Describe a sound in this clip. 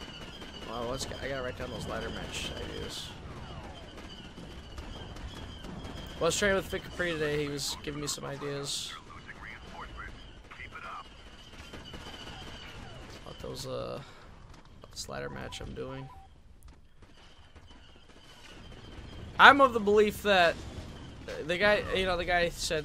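Blaster shots fire in quick bursts.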